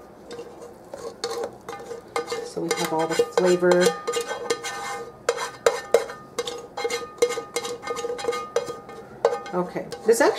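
Thick liquid pours and drips through a mesh strainer.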